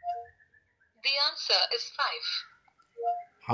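A synthetic female voice speaks through a small phone speaker.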